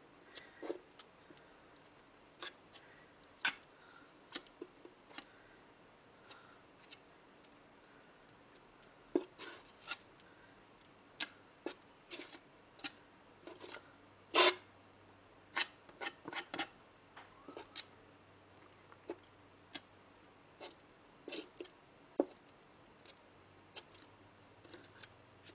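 A palette knife clicks and taps against a board.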